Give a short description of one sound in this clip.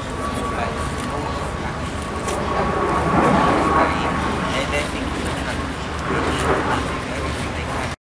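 A construction machine rumbles steadily.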